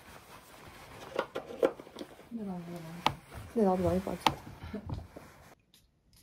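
Clothing fabric rustles.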